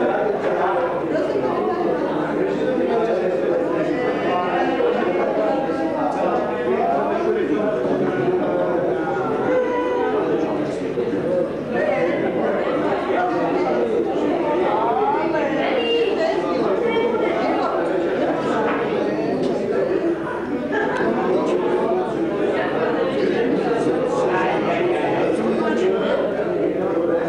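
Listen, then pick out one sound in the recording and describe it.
Several middle-aged women sing together.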